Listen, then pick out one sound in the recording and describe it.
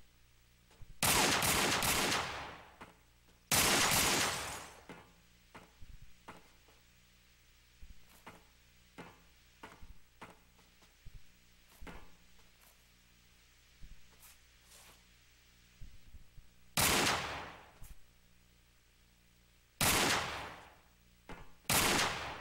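Pistol shots ring out in loud bursts with a hissing echo.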